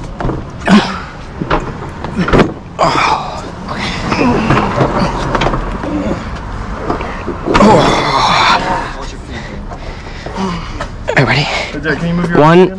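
A piano bumps and thuds on steps.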